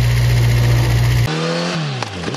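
A motorcycle engine idles with a deep, steady rumble close by.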